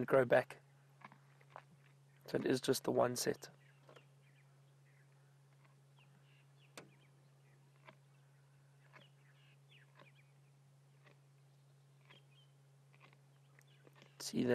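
A lioness chews and tears at meat close by.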